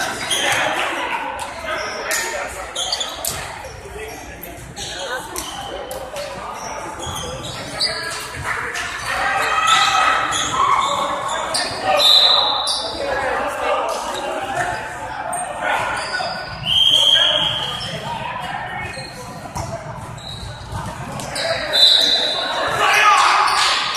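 Men call out and shout to each other in a large echoing gym.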